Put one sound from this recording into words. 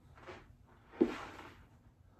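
A foot thumps on the floor.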